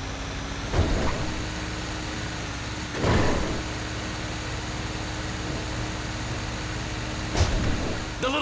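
A truck bumps and thuds over rough ground.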